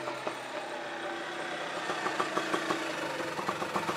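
An auto-rickshaw engine putters as the vehicle drives up and stops.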